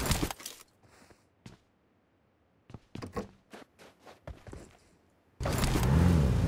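Footsteps patter quickly on a floor.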